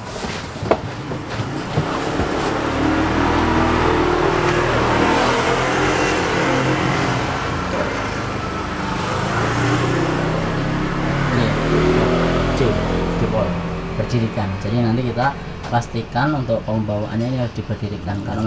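Cardboard rustles and scrapes as a large box is handled.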